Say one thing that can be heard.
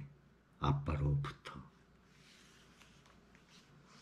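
Book pages rustle as a man turns them.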